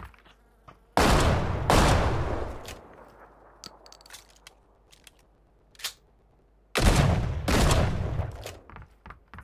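Gunshots ring out loudly and echo.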